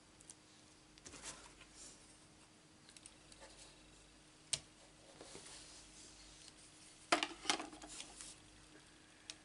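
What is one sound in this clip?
A plastic plate clatters as hands slide it onto a surface.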